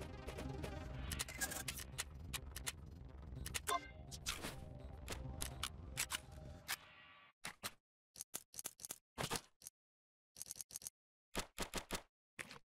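Short clicks and soft thuds sound as items are picked up and dropped.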